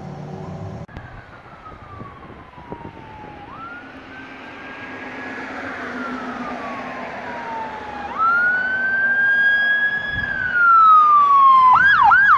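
A siren wails, rising and falling as it draws closer.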